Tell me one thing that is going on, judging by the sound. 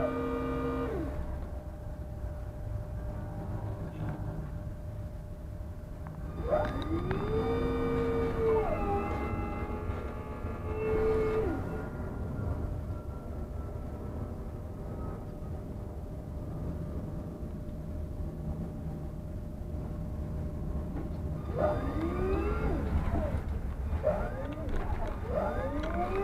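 A tram's engine hums low and steady.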